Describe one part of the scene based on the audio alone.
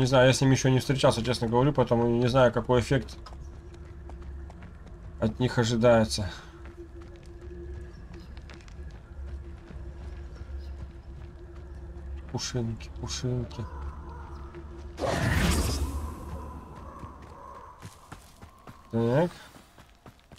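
A young man talks casually and close to a microphone.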